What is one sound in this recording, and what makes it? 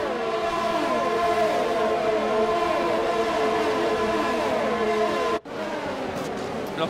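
Racing car engines scream at high revs, rising in pitch through quick gear changes.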